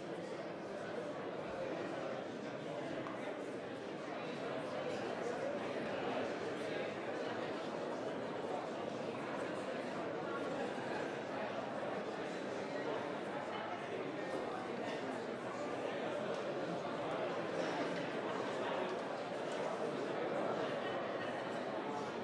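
A crowd of men and women chatter in a large room.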